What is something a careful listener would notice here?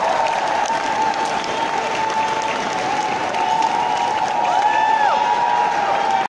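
A crowd of people chatters loudly in a large echoing hall.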